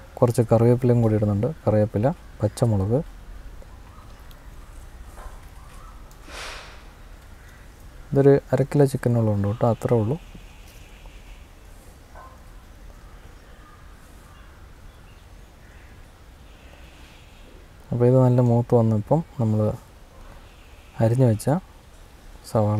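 A metal spoon scrapes and stirs food in a pan.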